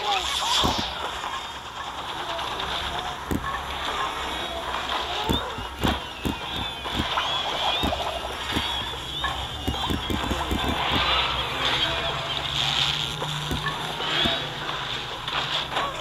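Game sound effects of rapid shots, pops and explosions play throughout.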